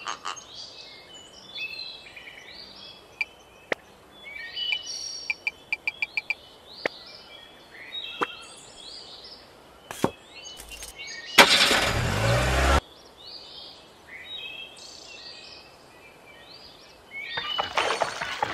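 Small birds chirp and cheep repeatedly in a cartoonish way.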